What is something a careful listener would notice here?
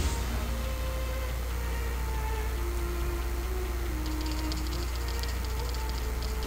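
Soft game music plays a slow melody.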